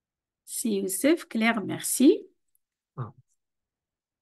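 A middle-aged woman speaks warmly over an online call.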